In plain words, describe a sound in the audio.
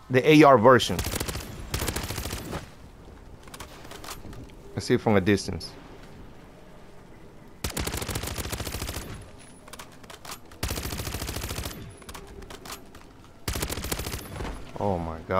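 An automatic rifle fires rapid bursts of gunfire.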